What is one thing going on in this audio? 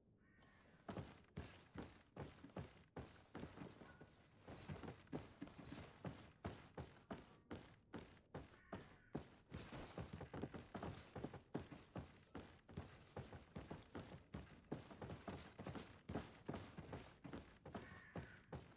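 Boots thud steadily on a wooden floor.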